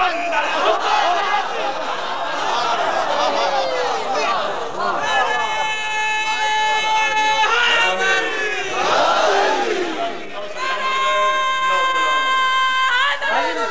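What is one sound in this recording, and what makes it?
A man sings loudly through a microphone, holding long wavering notes.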